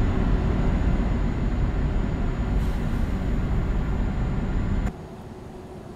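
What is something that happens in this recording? A truck engine drones steadily, heard from inside the cab.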